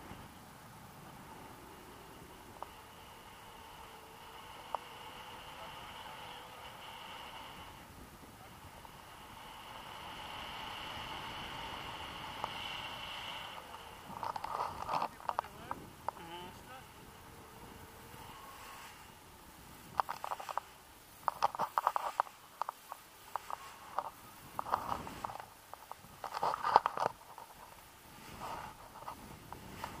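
Wind rushes past and buffets the microphone in gusts.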